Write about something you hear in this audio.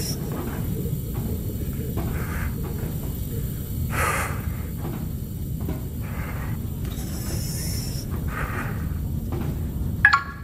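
Footsteps clank slowly on a metal floor.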